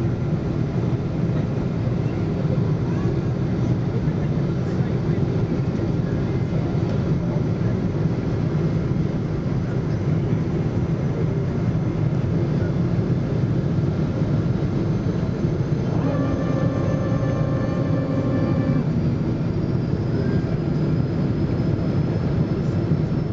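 A jet engine roars steadily from inside an airplane cabin.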